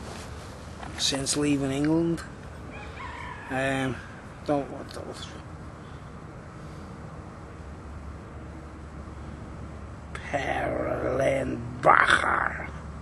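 A middle-aged man talks close up, loosely and with animation.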